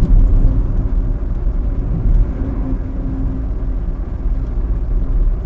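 Tyres roar low and steady on the road.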